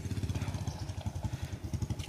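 A motorcycle engine hums nearby.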